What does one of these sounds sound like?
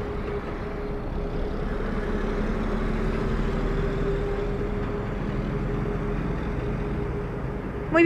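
A large truck rumbles past.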